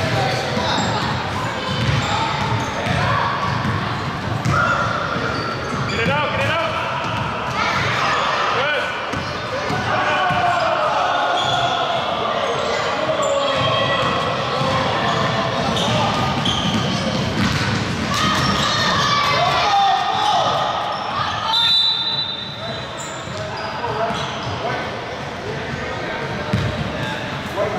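Basketballs thump on a wooden floor.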